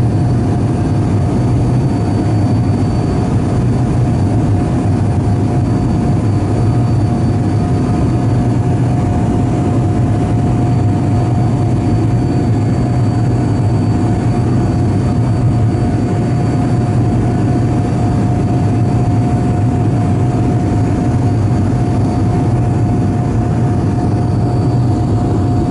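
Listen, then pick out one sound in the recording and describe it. A jet engine whines with a constant steady tone.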